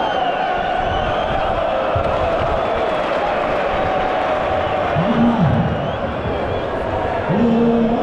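A large crowd sings and chants loudly in a big echoing stadium.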